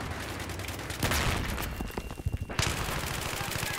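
A rifle fires rapid gunshots.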